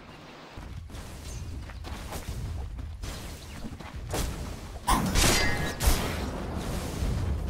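Fantasy battle sound effects whoosh, clash and crackle.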